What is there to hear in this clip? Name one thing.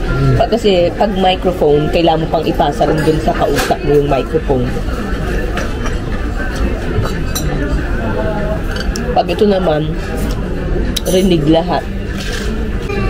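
A young woman speaks close by, casually.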